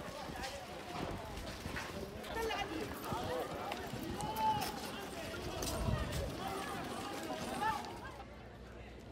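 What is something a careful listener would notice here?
A crowd of people talks outdoors.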